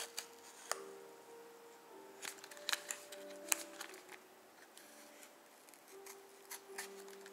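Cardboard packaging rustles and scrapes in hands.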